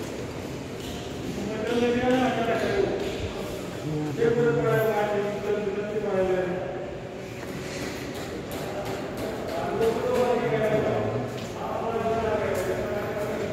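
Footsteps scuff across a gritty floor.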